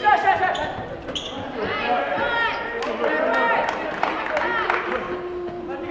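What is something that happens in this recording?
Spectators murmur and call out in the stands.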